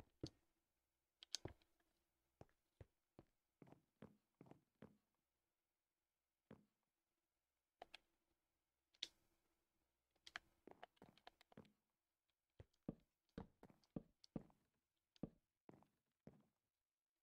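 Wooden blocks thud softly as they are placed.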